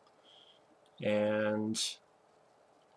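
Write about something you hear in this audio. A young man makes a short, drawn-out vocal sound close to a microphone.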